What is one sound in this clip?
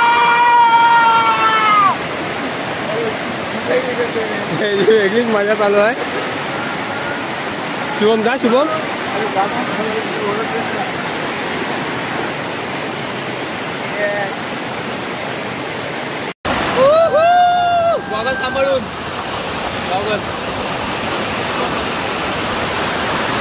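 Water rushes and splashes loudly down a waterfall.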